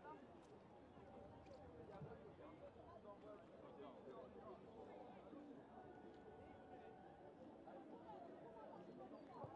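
Players call out to each other on the field.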